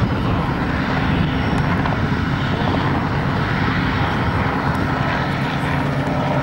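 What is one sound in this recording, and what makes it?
A small model aircraft engine drones steadily overhead in the distance.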